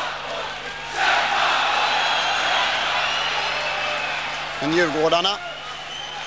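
A crowd cheers loudly in a large echoing arena.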